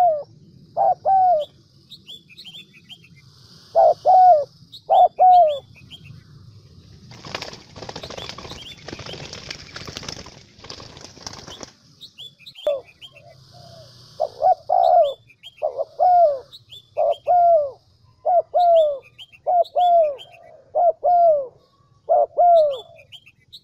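A dove coos close by, again and again in short repeated phrases.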